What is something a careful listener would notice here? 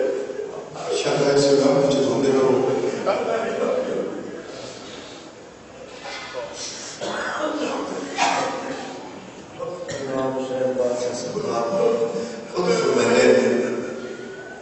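A man speaks passionately into a microphone, heard through loudspeakers with echo.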